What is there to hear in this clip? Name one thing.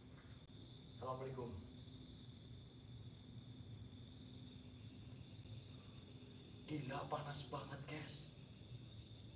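A young man speaks briefly and calmly nearby.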